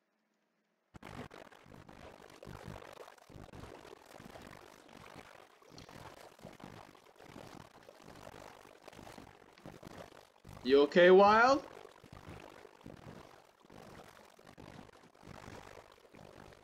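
Oars paddle and splash softly through water.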